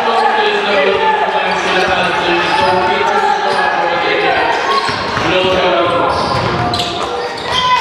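A crowd of children shouts and cheers in a large echoing hall.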